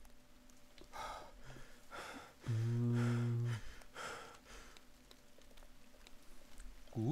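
Rain falls.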